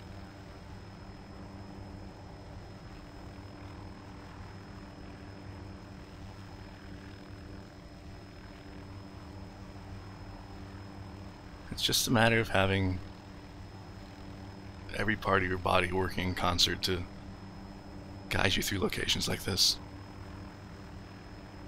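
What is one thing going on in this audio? A helicopter engine hums steadily as its rotor turns.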